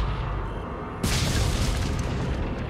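A wooden gate bursts apart with a loud crash.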